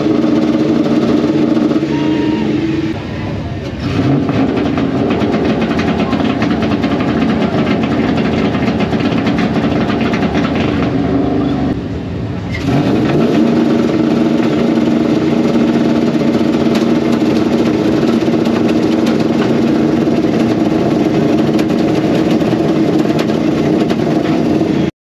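Two truck engines rev loudly and roar close by.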